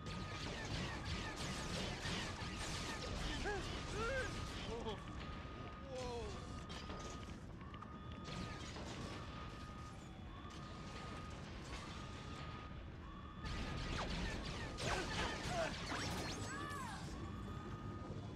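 Explosions crackle and burst.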